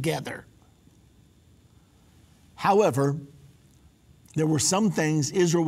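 A middle-aged man speaks calmly and clearly into a microphone, with short pauses.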